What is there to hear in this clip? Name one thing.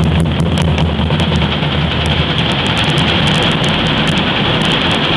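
A brass band plays loudly in a large echoing hall.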